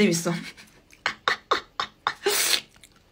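A young woman laughs in short bursts.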